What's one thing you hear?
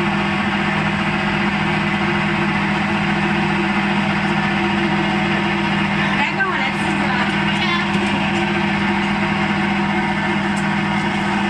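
A belt-driven electric motor hums as it runs a rice cake extruder.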